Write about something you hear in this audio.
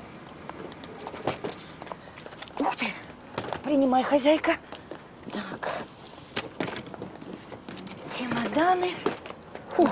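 Suitcases thump and knock as they are lifted from a car boot.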